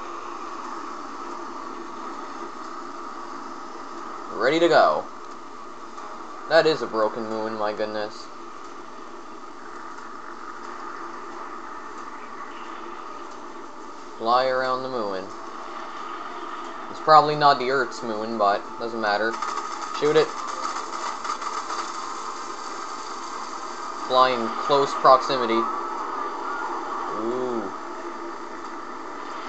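Spaceship engines hum steadily.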